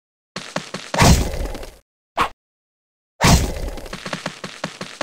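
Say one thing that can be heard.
Game explosions burst loudly.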